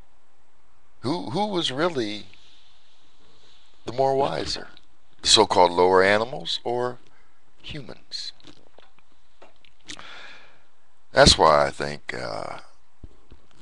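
An older man speaks with animation into a close microphone, in short bursts with pauses.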